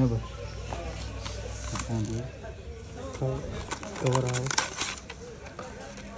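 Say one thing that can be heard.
A cardboard box is opened and handled.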